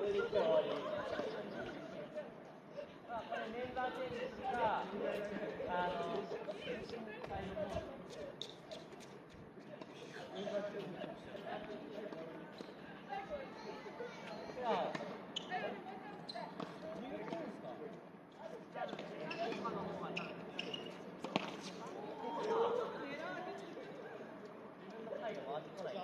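Young men call out to each other across an outdoor court.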